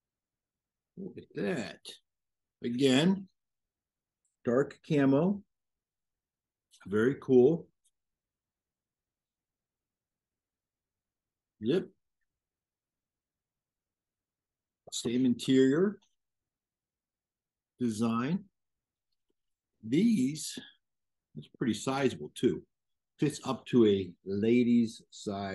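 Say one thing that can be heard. A middle-aged man talks calmly into a microphone, heard through an online call.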